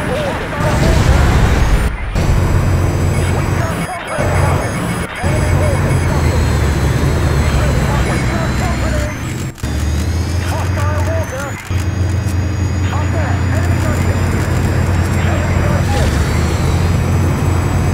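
A helicopter engine drones with a low, steady thumping rotor.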